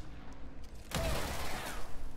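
A loud blast bursts with a rush of noise.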